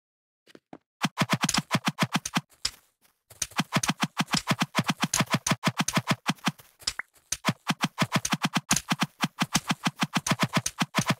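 Sword blows land in quick, rapid succession.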